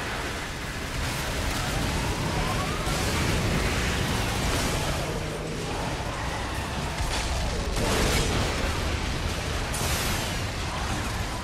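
Gunfire and explosions crack and boom in bursts.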